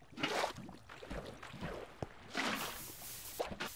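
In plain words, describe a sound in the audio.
A bucket scoops up water with a short slosh.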